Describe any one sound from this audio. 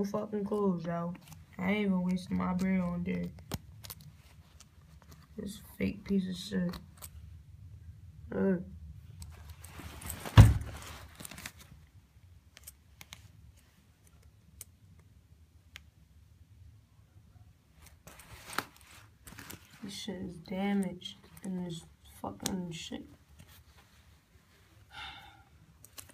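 A metal button clicks under fingers.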